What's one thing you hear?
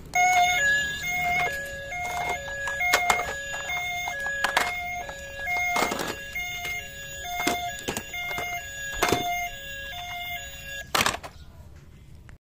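Plastic toy cars clatter against each other in a plastic basket.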